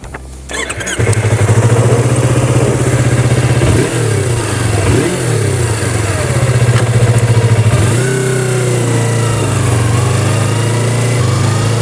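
A motorcycle engine idles with a steady low rumble.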